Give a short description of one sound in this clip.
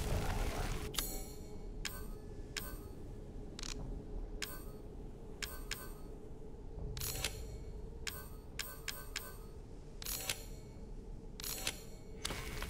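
Menu clicks tick as items are selected and crafted.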